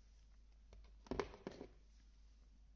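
A pistol knocks against a wooden surface as it is picked up.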